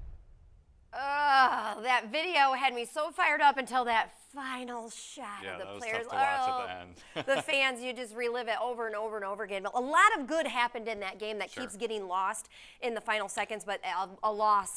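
A woman speaks brightly into a microphone.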